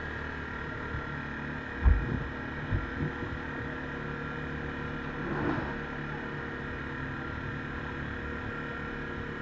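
A quad bike engine idles with a steady, low drone close by.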